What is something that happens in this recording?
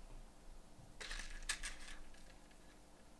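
Small metal rivets rattle in a plastic box.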